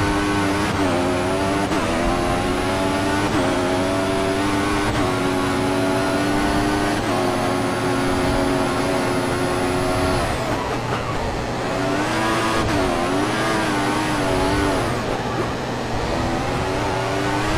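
A racing car engine screams at high revs, rising through the gears and dropping as it slows.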